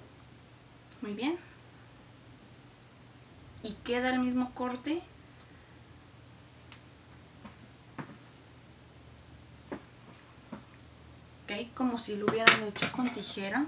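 A young woman speaks close to the microphone in an animated way.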